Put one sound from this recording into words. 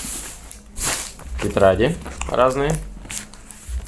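Paper pages rustle and flap.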